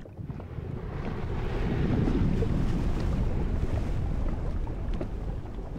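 Water swirls and rumbles in a low, muffled underwater wash.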